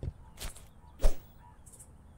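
An axe chops into a wooden log with a sharp knock.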